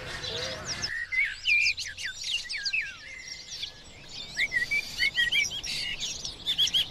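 A blackbird sings with sharp chirps and whistles.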